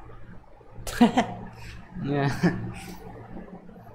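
A young man laughs briefly.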